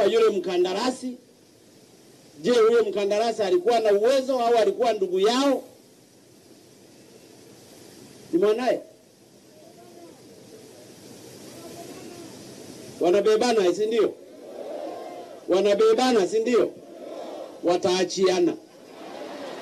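A man speaks forcefully through a microphone and loudspeakers outdoors, pausing between phrases.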